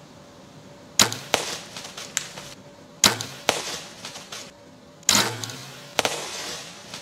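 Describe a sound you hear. A deer bounds away through dry leaves with loud rustling crashes.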